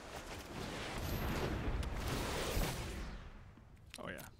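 A magical spell effect whooshes and rumbles loudly.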